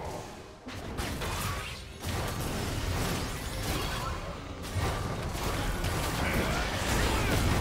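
Magic blasts and impacts crackle and boom in a busy video game battle.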